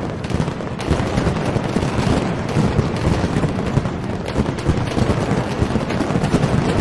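Firecrackers explode in a rapid, deafening barrage outdoors.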